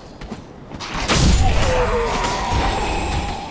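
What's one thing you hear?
A heavy blow lands with a loud crash.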